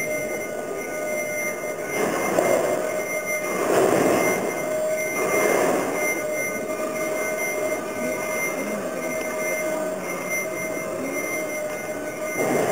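A piano plays in a large echoing hall.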